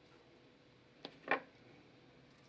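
A soft lump of food is set down on a metal tray with a light tap.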